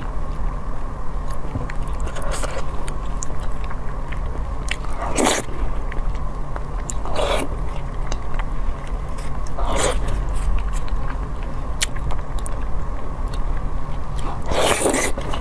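A woman chews food wetly, close up.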